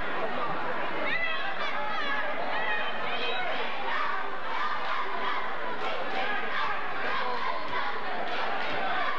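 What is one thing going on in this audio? A man shouts loudly from the sideline.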